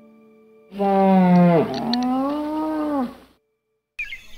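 A moose lets out a long, low moaning call that slides down in pitch.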